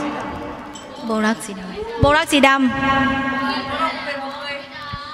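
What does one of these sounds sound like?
A young woman sings into a microphone over a loudspeaker.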